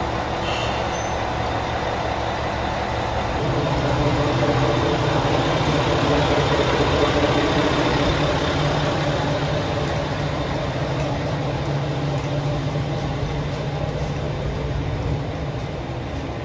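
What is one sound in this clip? A train's diesel engine idles nearby with a steady low rumbling hum.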